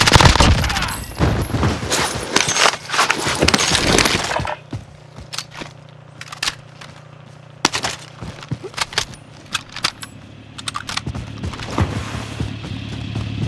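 Rapid gunshots crack close by.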